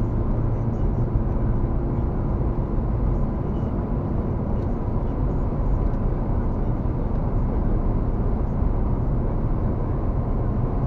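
Tyres roar steadily on a smooth road, heard from inside a car.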